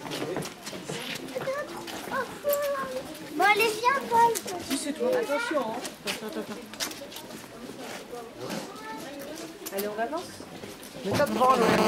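Young girls talk and call out nearby.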